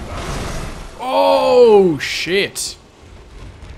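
A beast growls and roars loudly.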